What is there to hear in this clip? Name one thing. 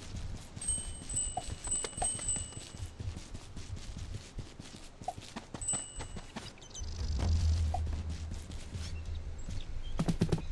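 Small footsteps patter quickly through grass.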